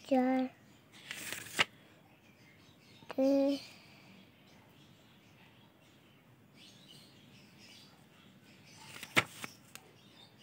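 Paper pages rustle and flip as a notebook is leafed through.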